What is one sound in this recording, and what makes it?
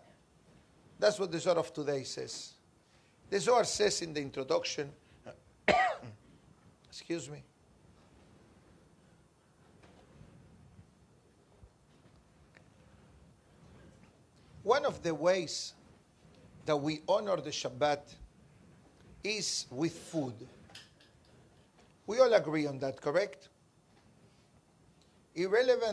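A middle-aged man speaks calmly and close to a microphone, in bursts with pauses.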